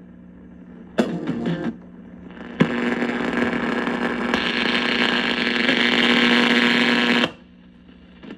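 Loud static bursts from an old radio as a knob is turned.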